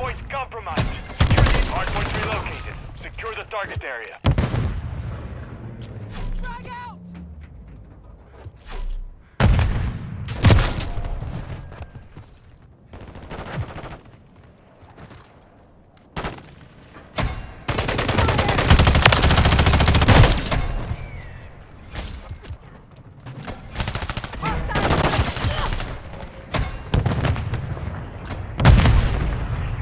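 Gunfire cracks in rapid, loud bursts.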